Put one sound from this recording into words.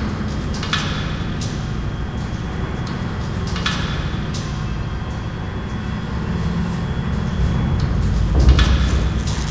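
An elevator hums steadily as it rides.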